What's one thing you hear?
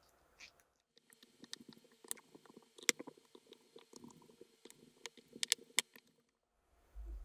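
A screwdriver creaks and clicks as it turns a rusty screw.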